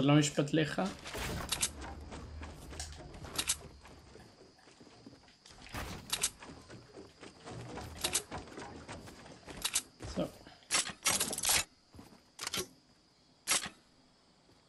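Wooden building pieces snap into place with sharp clacks.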